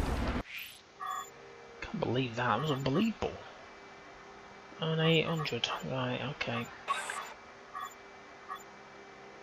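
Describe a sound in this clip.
Short electronic beeps sound as menu items are selected.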